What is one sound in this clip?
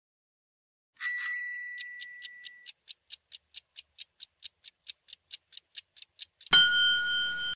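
A countdown timer ticks quickly and steadily.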